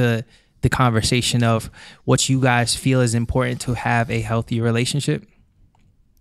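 A young man sings into a microphone, close and clear.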